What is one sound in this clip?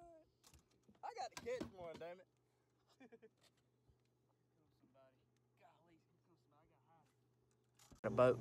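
A second man laughs and talks loudly close by.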